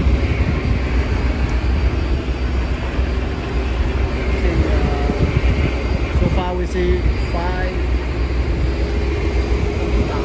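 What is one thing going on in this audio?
Water rushes and splashes behind a moving boat.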